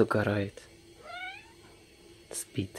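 A cat meows softly close by.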